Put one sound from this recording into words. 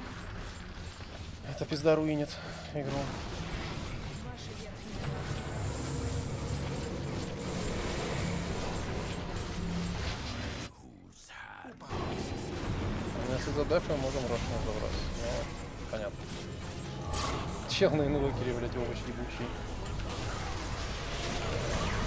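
Game battle effects clash and whoosh.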